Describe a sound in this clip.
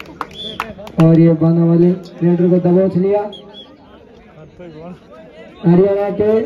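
A young man chants loudly and rapidly, close by.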